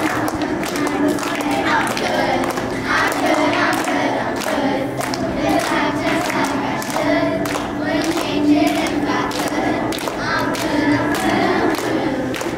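A group of young girls sings together in an echoing hall.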